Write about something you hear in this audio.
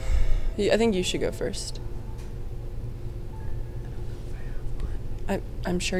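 A young woman speaks briefly and casually into a close microphone.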